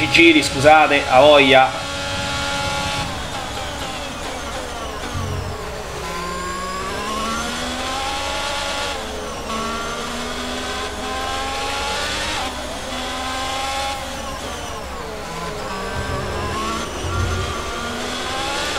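A racing car engine whines, rising and falling in pitch as gears shift.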